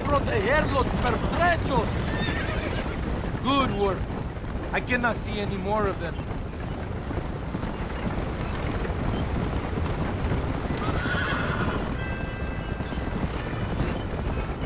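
Horse hooves clop steadily on dirt.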